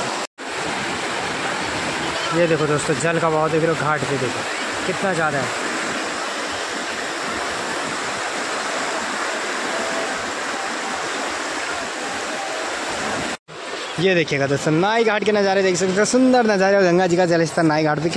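Fast floodwater rushes and churns loudly.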